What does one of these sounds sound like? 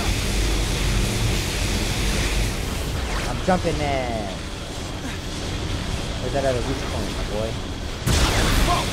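Wind rushes loudly past during a fall from a height.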